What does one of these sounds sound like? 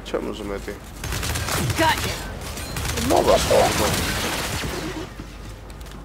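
Rifle gunfire rattles in quick bursts.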